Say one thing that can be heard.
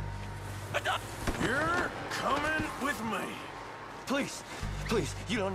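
A man pleads desperately close by.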